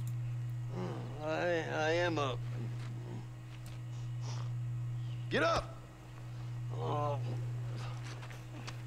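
An elderly man answers in a weary, groggy voice.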